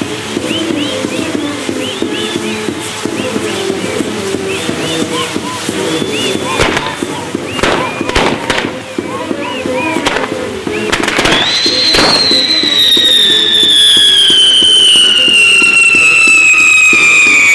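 Fireworks whistle shrilly, with one long whistle slowly falling in pitch.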